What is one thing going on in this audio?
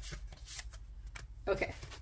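Playing cards rustle as a hand gathers them up.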